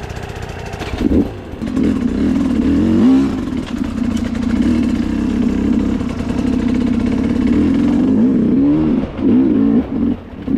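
A dirt bike engine revs close by, rising and falling in pitch.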